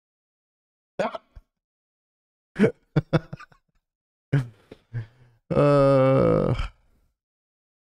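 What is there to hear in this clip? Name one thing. A young man laughs into a close microphone.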